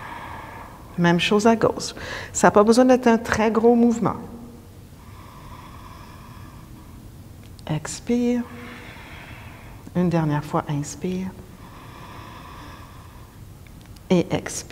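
A woman speaks calmly and closely, as if into a microphone.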